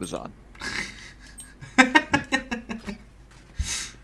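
A young man talks and laughs with animation, close to a microphone.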